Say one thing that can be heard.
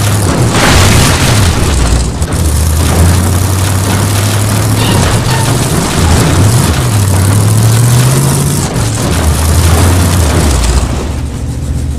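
A car engine roars and revs as the car drives over rough ground.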